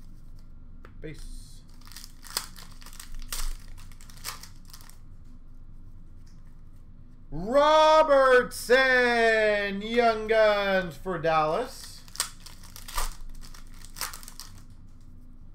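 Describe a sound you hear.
Cards rustle and flick as they are handled and sorted.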